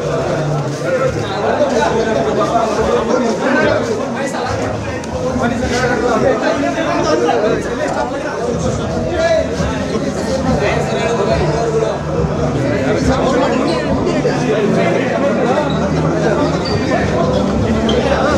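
A crowd of young men chatters and calls out loudly close by.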